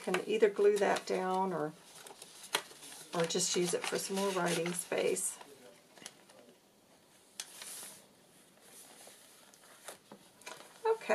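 Stiff paper rustles and crinkles as pages are handled and turned.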